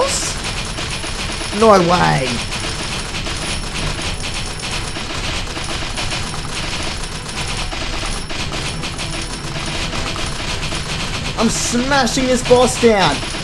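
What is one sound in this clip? Coins jingle as they drop.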